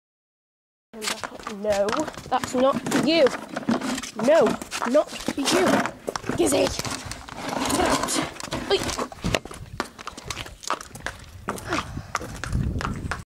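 A horse's hooves clop on cobblestones.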